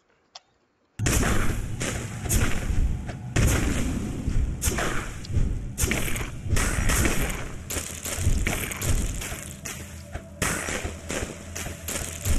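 Game battle sounds of shots and blasts play loudly and without a break.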